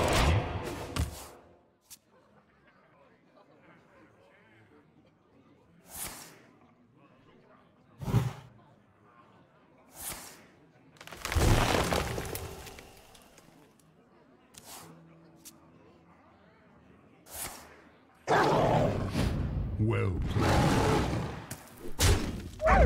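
Game sound effects whoosh and burst as cards are played.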